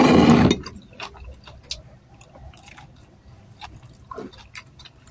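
A young woman chews and smacks food close by.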